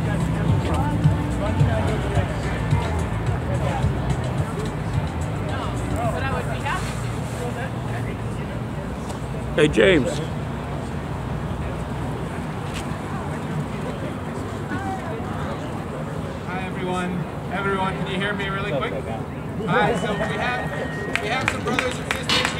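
A crowd of men and women murmurs and chatters nearby outdoors.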